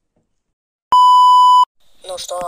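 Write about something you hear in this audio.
A steady high test tone sounds briefly.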